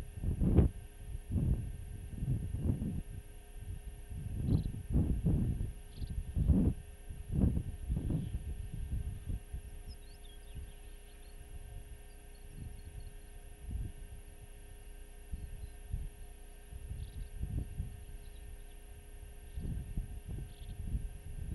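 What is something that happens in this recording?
Wind gusts across open ground, buffeting in bursts.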